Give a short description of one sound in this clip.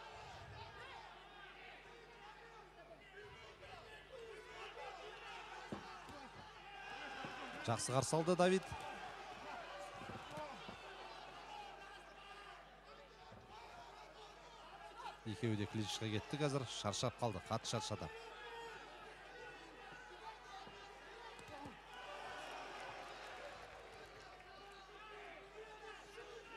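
A crowd in a large hall murmurs and shouts.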